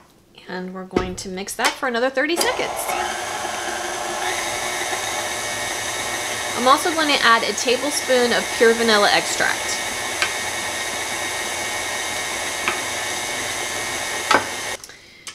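A stand mixer whirs steadily as it beats batter.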